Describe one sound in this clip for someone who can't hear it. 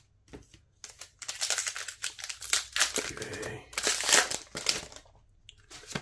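A foil wrapper crinkles and tears.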